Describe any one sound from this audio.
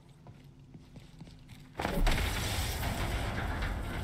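Footsteps crunch quickly over loose gravel and rubble.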